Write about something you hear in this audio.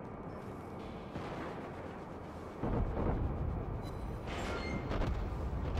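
Shells explode in the distance with dull booms.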